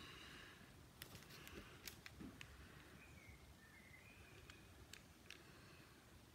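Plastic sunglasses click as their arms are unfolded close by.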